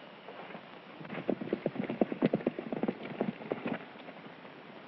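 Horse hooves clop quickly on hard ground.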